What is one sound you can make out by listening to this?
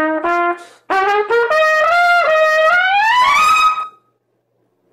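A trumpet plays a short rising run of notes up close.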